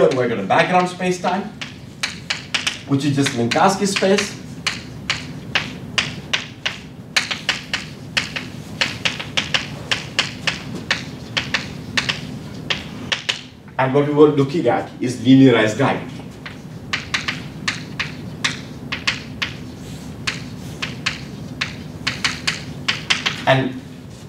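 Chalk taps and scrapes rapidly on a blackboard.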